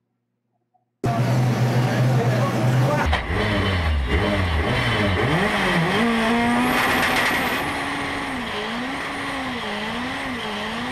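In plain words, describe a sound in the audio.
A racing engine rumbles loudly, revving up and down.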